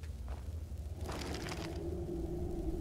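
A heavy gate scrapes and rumbles shut.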